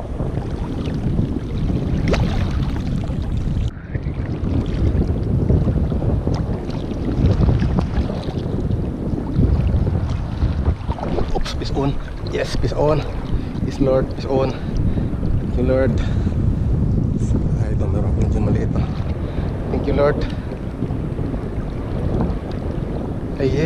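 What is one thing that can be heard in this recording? Water laps and splashes against a small boat.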